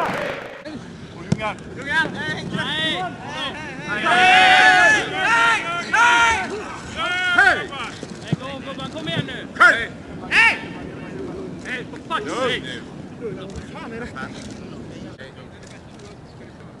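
Several men shout and yell at each other outdoors.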